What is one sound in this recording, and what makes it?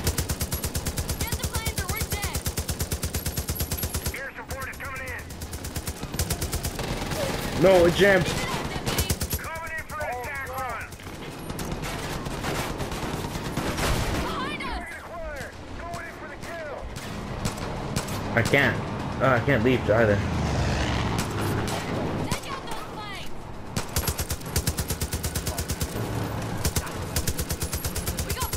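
A heavy machine gun fires long rapid bursts.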